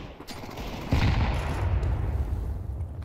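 An assault rifle fires a shot.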